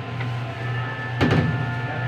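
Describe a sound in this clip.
Ceramic plates clink as they are stacked.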